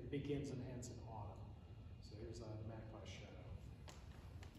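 A woman speaks calmly in a large echoing hall.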